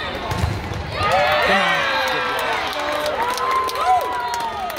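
Young women cheer together.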